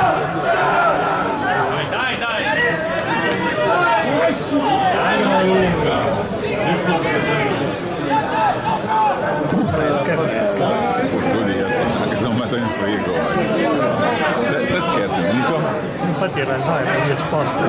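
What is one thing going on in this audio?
Football players shout to each other across an open field, heard from a distance.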